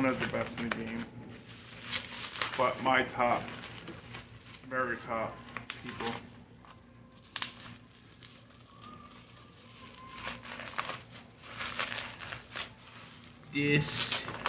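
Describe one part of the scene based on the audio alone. Plastic packaging crinkles and rustles in a man's hands.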